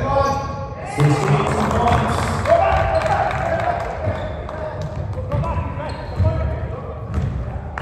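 Young men shout and call out across the echoing court.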